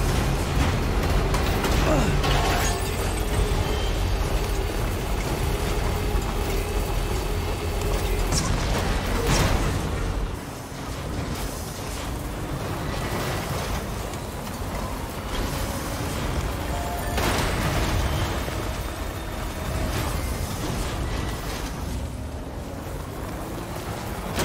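Tyres crunch and bump over rough ground.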